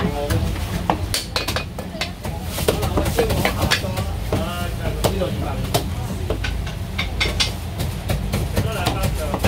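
A cleaver chops through roast meat onto a wooden board with sharp thuds.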